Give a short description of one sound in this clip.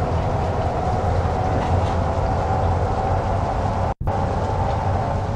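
A truck engine drones steadily at speed.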